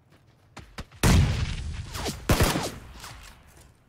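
A grenade explodes with a loud, echoing boom.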